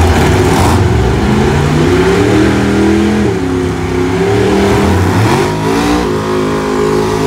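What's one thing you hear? A drag car engine revs up and down repeatedly.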